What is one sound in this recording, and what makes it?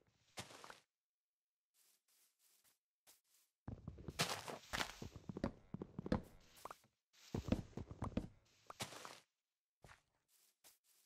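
Leaves rustle and crunch as they are broken.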